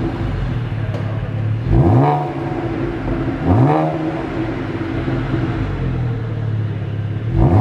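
A car engine idles with a deep burble from its exhaust.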